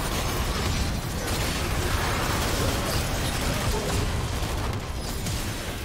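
Spell effects whoosh and blast in a fast game battle.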